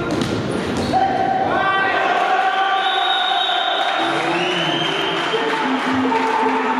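Young men shout to each other across an echoing hall.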